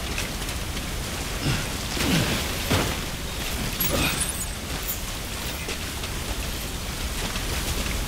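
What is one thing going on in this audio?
Footsteps crunch and scrape over rocks.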